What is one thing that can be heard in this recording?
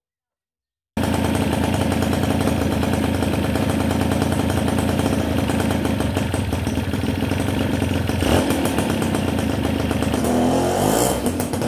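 A motorcycle engine idles with a steady, fast putter close by.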